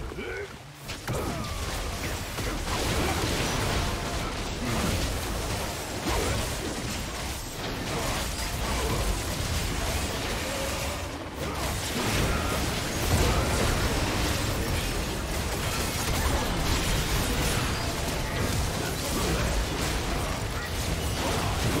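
Magic blasts and clashing hits crackle and boom in a fast battle.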